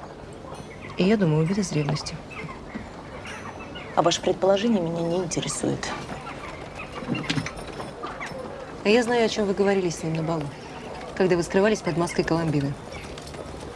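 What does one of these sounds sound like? An older woman answers coolly and firmly.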